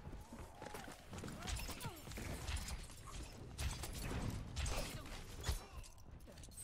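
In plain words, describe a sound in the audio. Gunfire pops in quick bursts.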